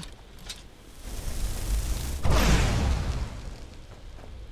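A burst of magical fire roars and whooshes.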